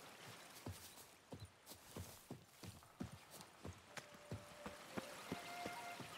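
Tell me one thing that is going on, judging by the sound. Footsteps run quickly and steadily over a dirt path.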